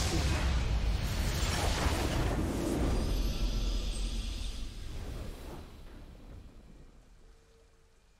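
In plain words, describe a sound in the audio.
A triumphant victory fanfare swells and slowly fades.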